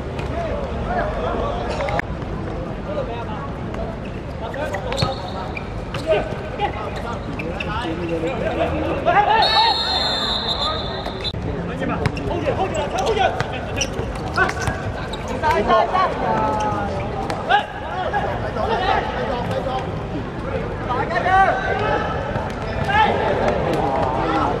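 A crowd of spectators chatters and shouts nearby outdoors.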